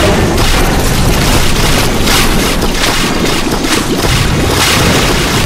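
Cartoonish game sound effects pop, splat and whoosh rapidly over each other.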